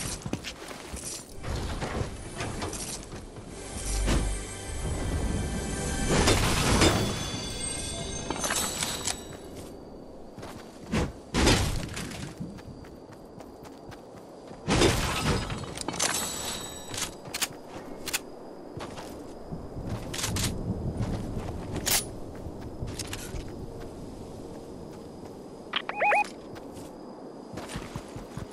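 Footsteps patter quickly over ground.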